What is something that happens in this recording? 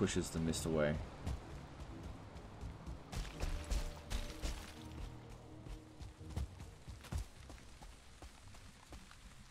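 Footsteps thud on grass.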